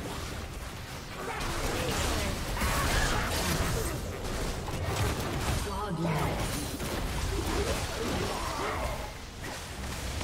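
Spells and attacks crackle and whoosh in a game battle.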